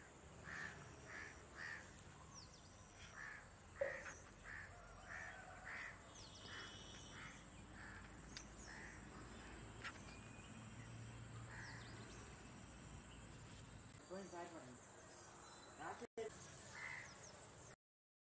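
A dog's paws rustle through dry grass.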